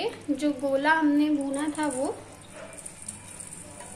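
Dry rice pours into a sizzling pan with a soft rush.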